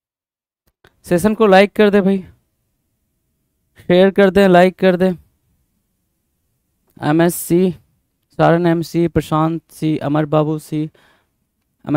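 A man speaks with animation, close to a headset microphone.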